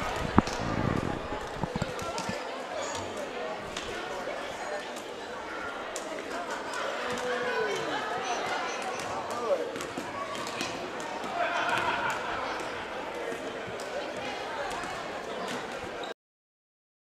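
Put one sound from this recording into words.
Basketballs bounce and thud on a wooden floor in a large echoing hall.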